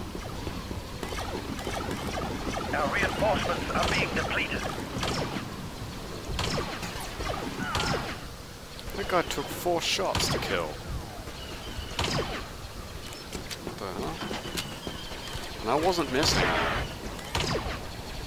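Laser blasters fire in sharp bursts.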